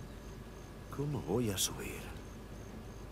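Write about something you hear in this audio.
A man speaks quietly to himself.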